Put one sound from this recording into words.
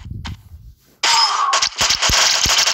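Arcade-style game effects of arrows striking enemies crackle and burst.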